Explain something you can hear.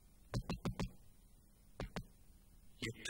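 A woman knocks on a wooden door.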